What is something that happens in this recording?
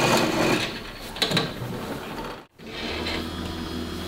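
A metal hatch lid clanks as it is opened.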